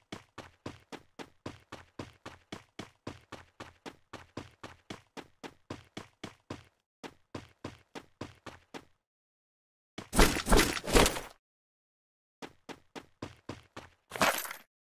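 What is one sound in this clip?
Quick footsteps run steadily over the ground.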